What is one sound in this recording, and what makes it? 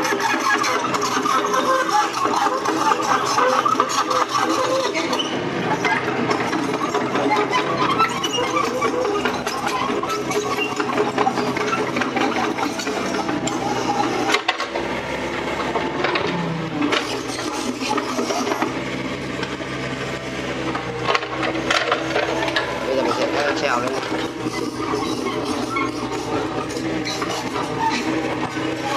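A small excavator's engine runs steadily close by.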